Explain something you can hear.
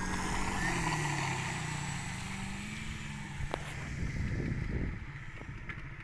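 A model plane's motor buzzes loudly, then fades as the plane climbs away.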